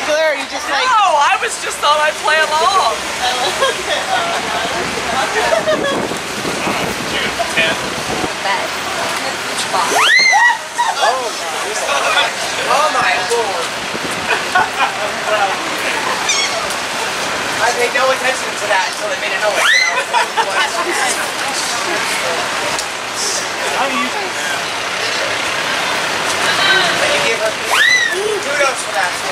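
A crowd of people chatters and calls out nearby outdoors.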